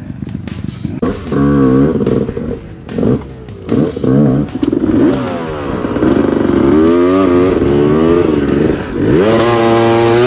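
A dirt bike engine revs up and down nearby.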